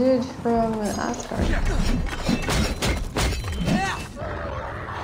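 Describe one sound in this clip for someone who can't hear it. A wolf yelps and howls.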